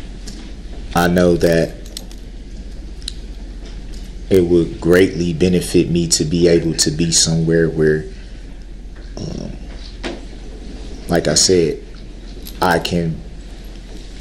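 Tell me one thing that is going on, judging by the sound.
A man speaks in short bursts with pauses.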